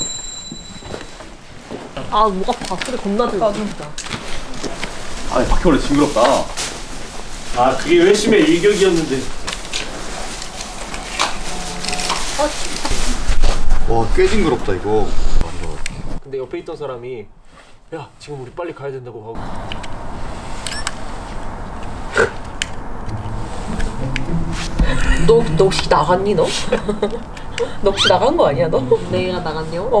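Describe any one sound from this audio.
Young men and women talk and chat nearby.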